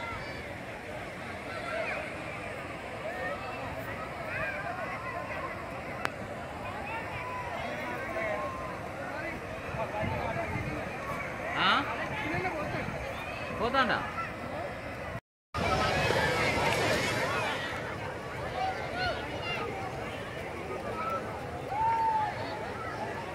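A large crowd chatters and shouts outdoors.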